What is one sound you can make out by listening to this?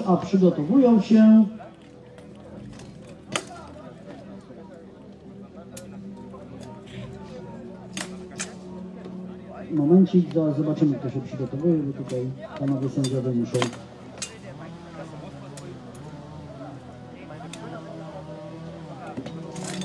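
A crowd murmurs in the open air.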